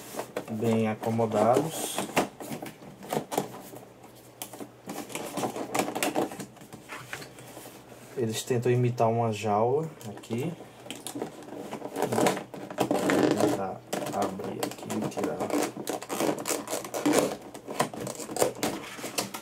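Cardboard flaps rustle and scrape as a box is handled.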